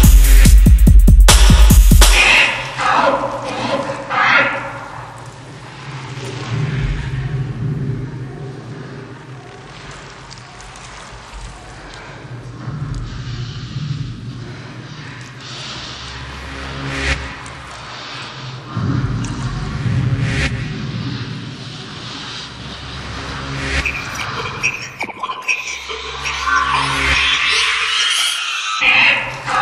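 Dance music plays steadily with a thumping bass beat.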